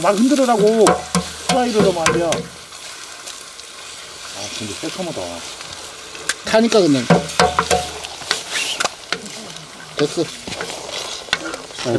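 Eggs sizzle in hot oil.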